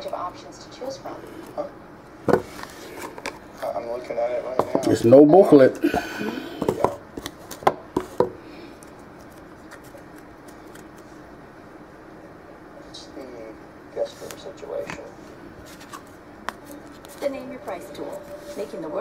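Playing cards shuffle and tap against each other in a deck.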